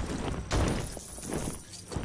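Small coins jingle and clatter as they scatter.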